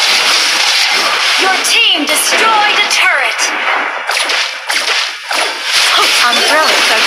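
Fantasy battle sound effects crackle and whoosh rapidly.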